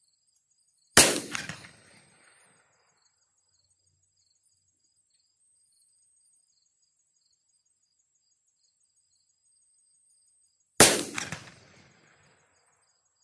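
A pistol fires sharp single shots that echo across open ground outdoors.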